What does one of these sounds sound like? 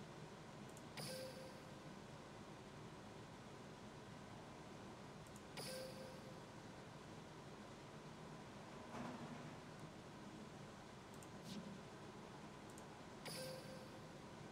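A short bright chime rings as a game menu opens.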